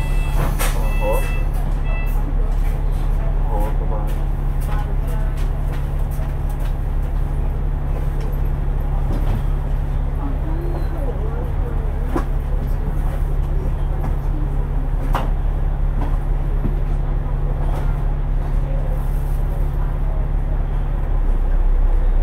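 A bus engine idles with a low steady rumble.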